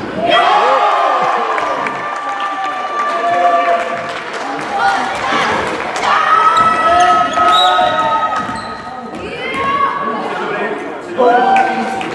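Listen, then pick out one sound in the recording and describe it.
Children shout to each other across the hall.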